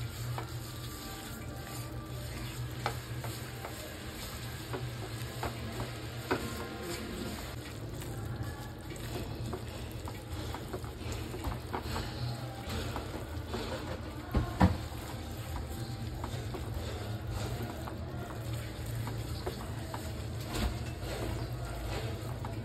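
A spatula scrapes against a pan.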